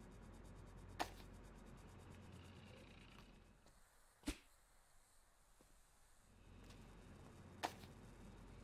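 Light objects thump and knock as they are dropped.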